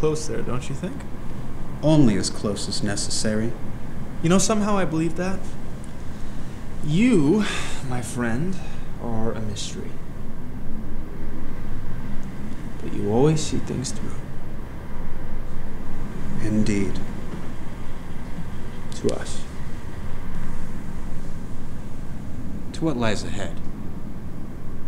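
A man speaks softly in reply, close by.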